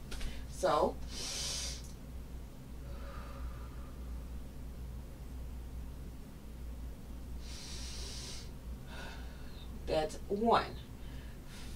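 A woman makes short, brief sounds with her voice close by.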